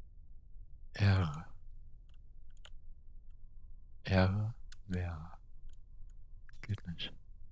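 A man speaks in short bursts into a close microphone.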